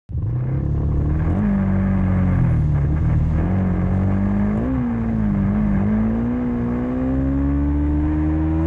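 Traffic of many motorbikes rumbles all around.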